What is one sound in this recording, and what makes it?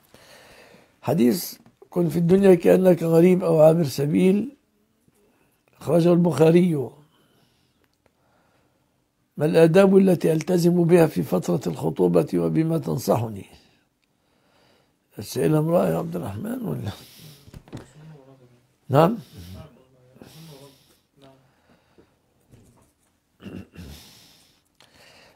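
An elderly man speaks calmly into a close microphone, in bursts with pauses.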